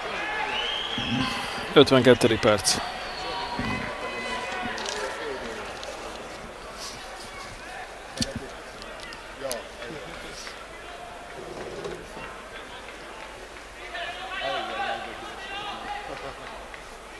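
A crowd murmurs faintly in an open stadium.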